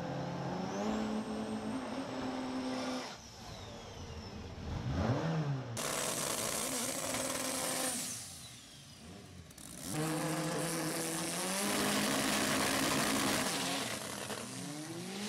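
A car engine idles roughly and revs in loud bursts.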